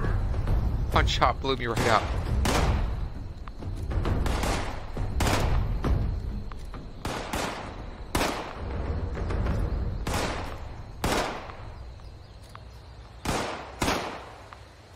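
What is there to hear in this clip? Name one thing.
Rifle shots crack one after another, with a short echo after each.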